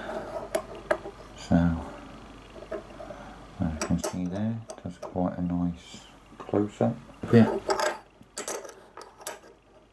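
A metal coin clicks and scrapes as fingers handle it.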